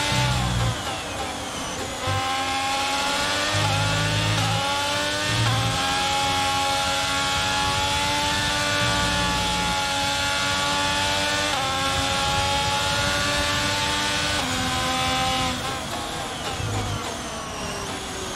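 A racing car engine screams at high revs, rising as it shifts up through the gears.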